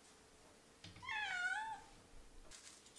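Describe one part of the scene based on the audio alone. A cat gives a short, warbling meow.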